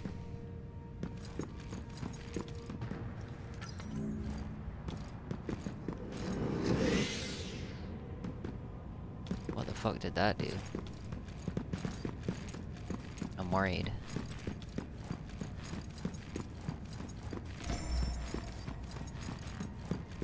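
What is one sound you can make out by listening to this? Heavy armored footsteps thud and clink on stone.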